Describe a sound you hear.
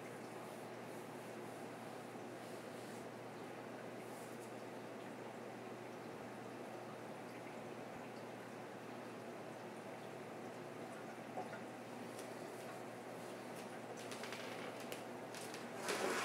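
Water churns and bubbles steadily in an aquarium.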